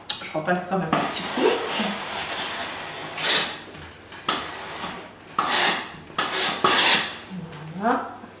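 Steam hisses from an iron in bursts.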